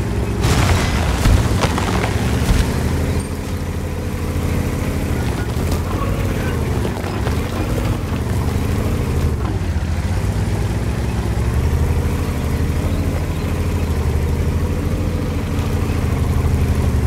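A tank engine rumbles and whines steadily as the tank drives.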